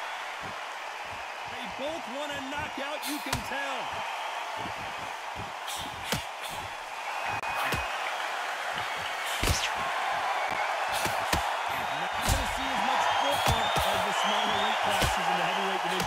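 Punches thud against a boxer's body and gloves.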